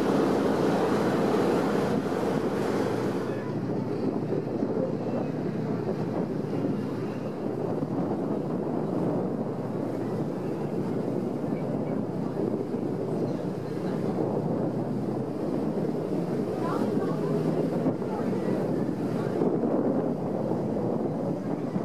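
A ferry's engine rumbles underway.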